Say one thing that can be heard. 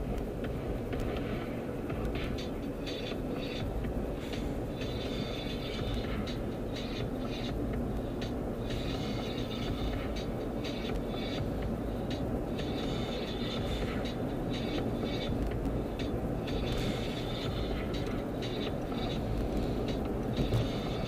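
Tyres roll and hiss on the road.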